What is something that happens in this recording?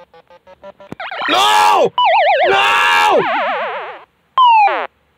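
Electronic game sound effects warble and sweep up and down in pitch.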